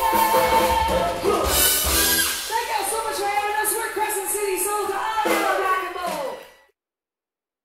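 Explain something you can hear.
A live band plays loudly in an echoing hall.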